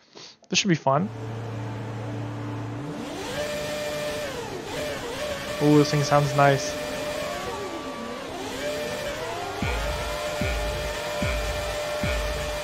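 Racing car engines idle and rev in short rising bursts.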